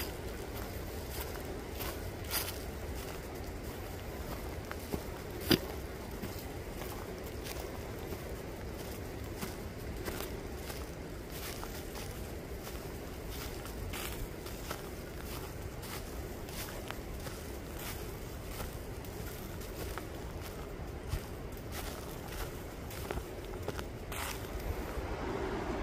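Wind rustles through the trees outdoors.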